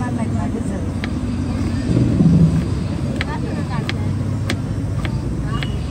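A knife chops through carrot onto a plastic board with sharp knocks.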